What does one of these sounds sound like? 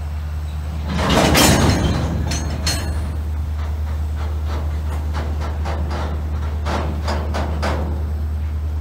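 Train wheels clank and knock over rail joints.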